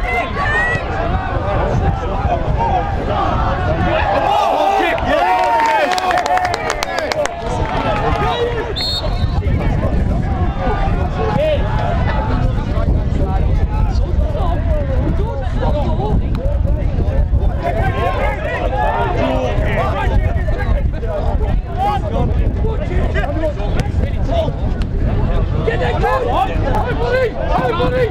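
Men shout and call to one another across an outdoor football pitch.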